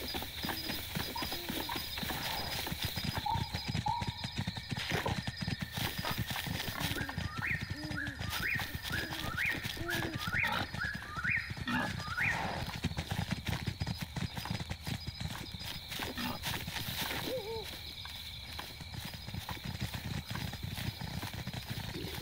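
Footsteps rustle quickly through grass.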